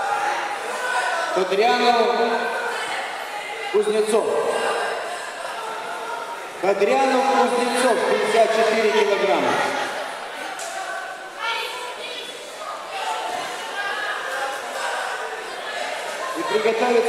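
A large crowd chatters in a big echoing hall.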